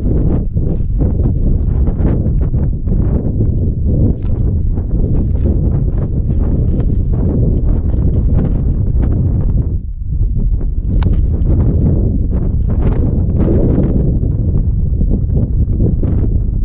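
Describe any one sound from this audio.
Wind rumbles and buffets loudly against the microphone outdoors.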